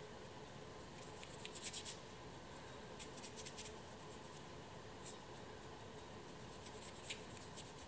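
A small brush dabs and scrapes softly on a ceramic plate.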